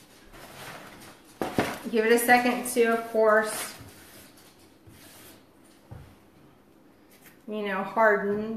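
Paper rustles and crinkles in a woman's hands.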